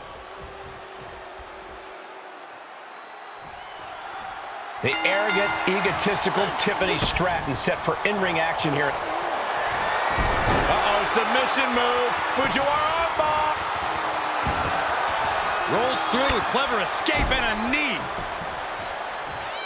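A crowd roars and cheers steadily in a large arena.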